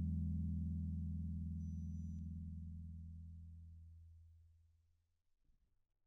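A bass guitar note rings low and slowly fades away.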